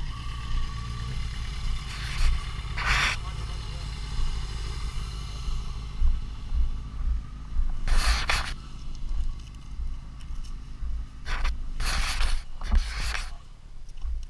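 A motorcycle engine hums while riding.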